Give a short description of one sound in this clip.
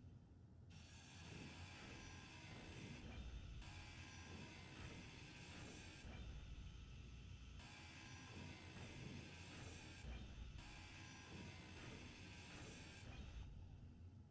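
A power grinder grinds metal in bursts, with a harsh high hiss.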